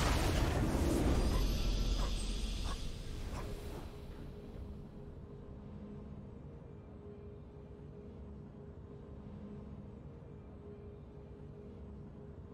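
A triumphant fanfare plays and settles into a soft sustained tone.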